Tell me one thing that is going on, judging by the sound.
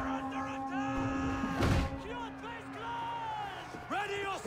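A man shouts a warning.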